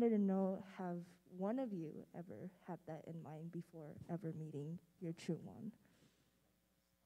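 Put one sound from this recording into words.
A young woman speaks calmly into a microphone, heard through a loudspeaker in a large room.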